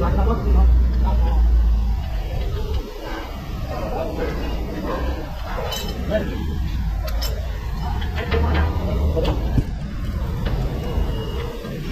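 Metal tools clink and tap against car parts.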